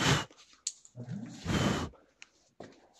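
A firecracker fuse hisses and sputters.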